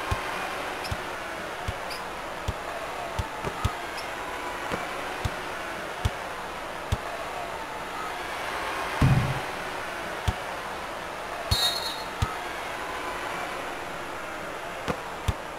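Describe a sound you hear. A basketball bounces on a hardwood court with regular thumps.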